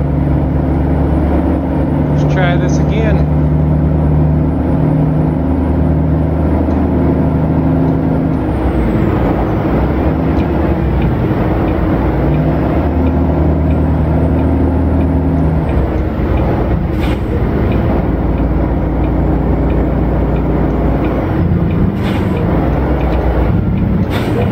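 A truck's diesel engine drones steadily, with its pitch shifting as it changes gear.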